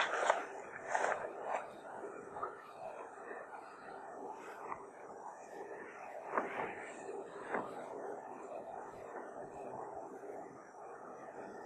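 A man speaks calmly and steadily, close by.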